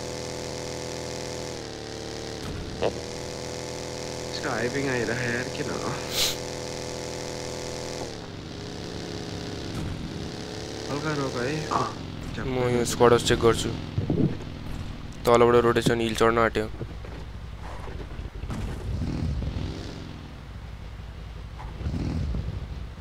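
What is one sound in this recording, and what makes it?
A small buggy engine drones and revs as it drives over rough ground.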